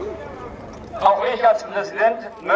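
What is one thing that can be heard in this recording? A man speaks into a microphone, heard through a loudspeaker outdoors.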